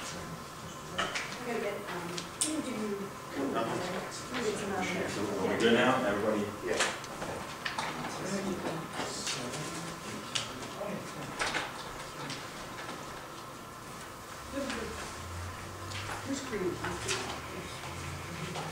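Several men talk casually in a room.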